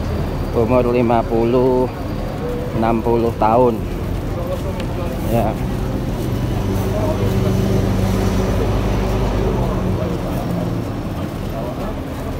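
Many feet shuffle along pavement.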